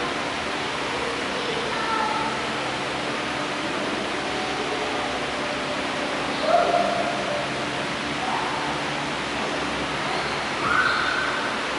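A man reads aloud through a microphone in a large echoing hall.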